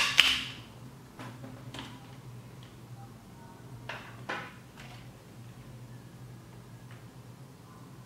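Plastic toy bricks click and clatter as hands handle them.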